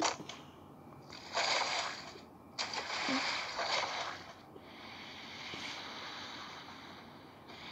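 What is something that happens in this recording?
Water splashes as a figure wades through shallow water.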